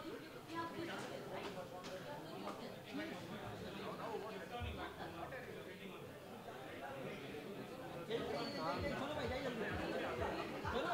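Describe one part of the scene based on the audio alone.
A crowd chatters and calls out around an indoor arena.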